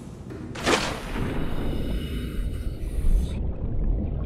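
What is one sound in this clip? Muffled underwater bubbling and rushing sound up close.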